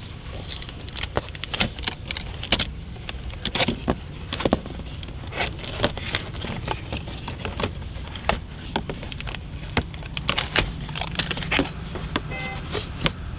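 Hands tap and knock on a cardboard box.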